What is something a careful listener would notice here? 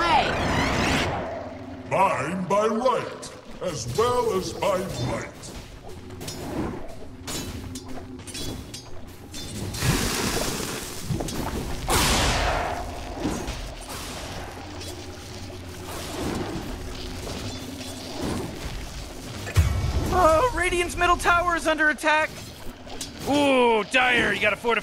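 Battle effects crackle, whoosh and clash in a busy fight.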